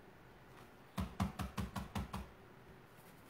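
A brush dabs and taps against a plate.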